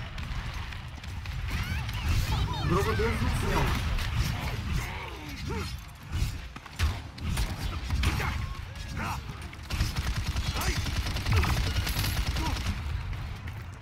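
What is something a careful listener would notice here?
Gunfire and magic blasts crackle and boom in a fast fight.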